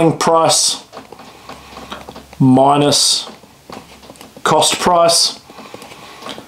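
A young man speaks calmly, close to a microphone, in short phrases.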